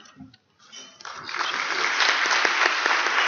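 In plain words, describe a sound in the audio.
People applaud.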